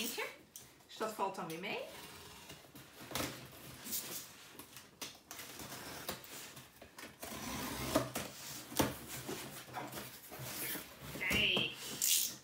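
Cardboard boxes scrape and thump as they are handled.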